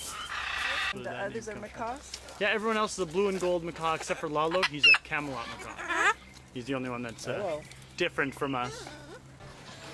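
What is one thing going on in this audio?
A cockatoo chatters and warbles in a voice-like way.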